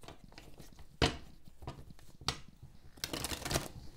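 Cards tap and slide against a hard tabletop.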